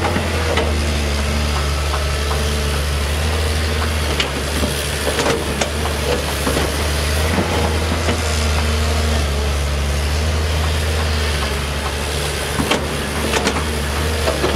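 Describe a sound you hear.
A digger bucket scrapes and knocks against rocks and mud.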